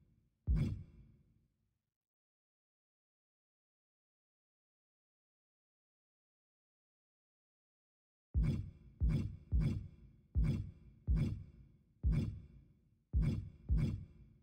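A game menu makes short whooshing clicks as selections change.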